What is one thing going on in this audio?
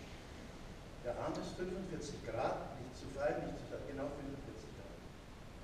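A man speaks out calmly in a large echoing hall.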